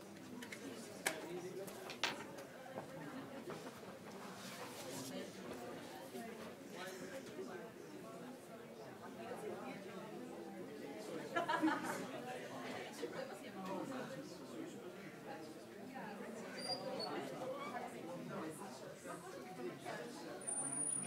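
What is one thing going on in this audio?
A man speaks steadily in a large echoing hall.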